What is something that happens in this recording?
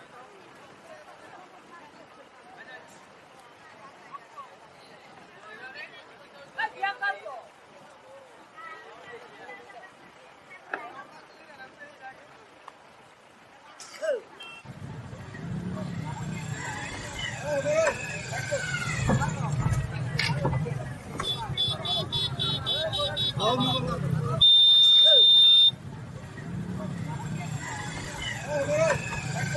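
Men talk and call out in a crowd outdoors.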